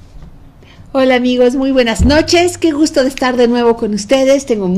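A middle-aged woman speaks warmly into a close microphone.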